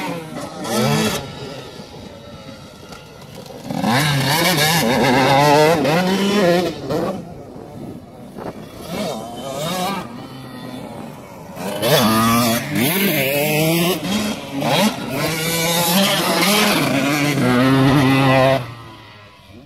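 A dirt bike engine revs and whines, rising and falling in pitch as the bike rides over bumps.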